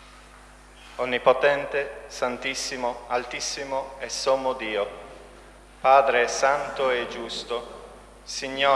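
A man chants aloud in an echoing hall.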